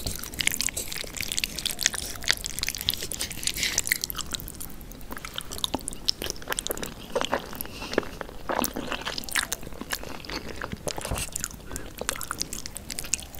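Saucy noodles squelch wetly as they are stirred and lifted.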